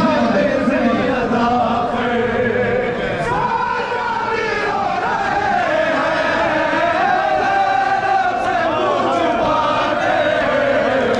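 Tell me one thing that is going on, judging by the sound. A large crowd of men chants loudly in unison.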